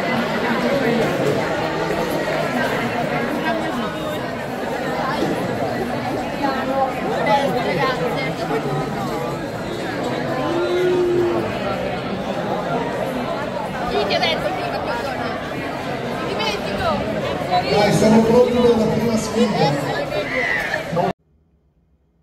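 A crowd of adults and children chatters loudly in a large echoing hall.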